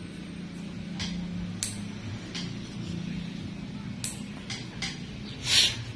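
Small nail clippers click sharply as they snip a toenail.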